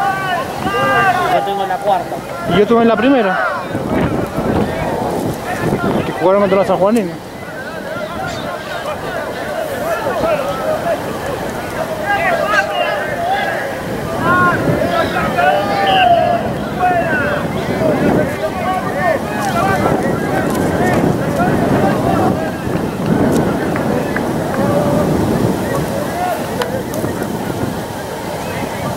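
A crowd chatters and calls out from stands outdoors.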